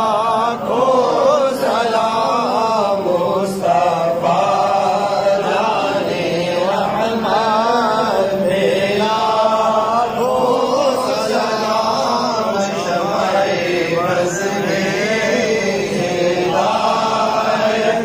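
A man chants a melodic recitation into a microphone, heard through a loudspeaker.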